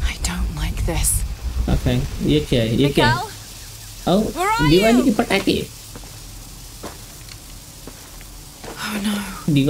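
A flare hisses and crackles as it burns.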